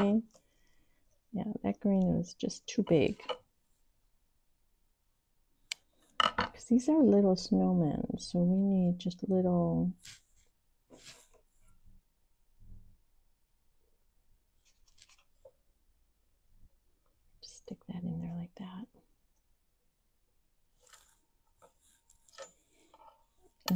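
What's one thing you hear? Small pieces click softly on a tabletop.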